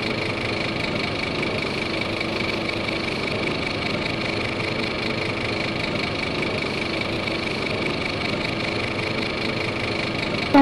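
A diesel bus engine idles.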